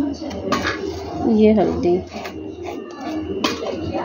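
A metal lid clicks against a tin.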